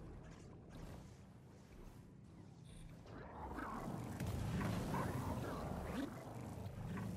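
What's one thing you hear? An energy field crackles and hums, growing louder.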